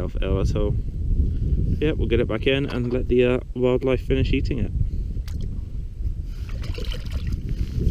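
Water splashes and sloshes as a hand stirs a rock pool.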